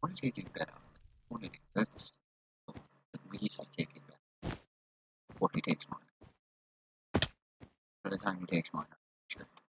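Blocks are placed one after another with short soft thuds.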